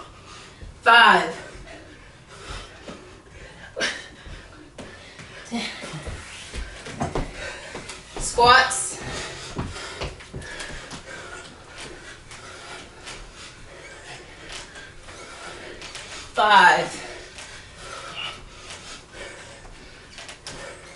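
Feet thump on a wooden floor during exercise.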